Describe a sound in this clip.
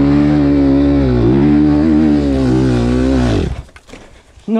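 A dirt bike engine roars loudly at close range, then cuts off.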